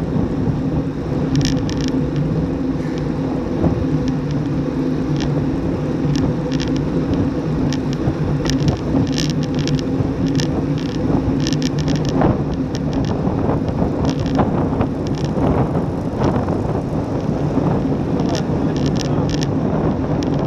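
Wind rushes steadily past close by, as if outdoors while riding fast.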